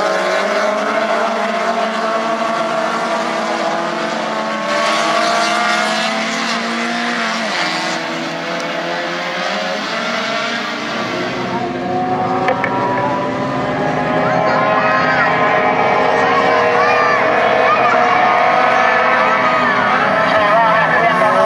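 Several small racing car engines roar and whine as the cars speed by.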